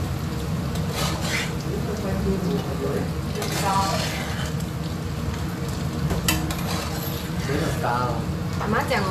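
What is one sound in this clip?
A metal ladle clinks and scrapes against a metal strainer and pan.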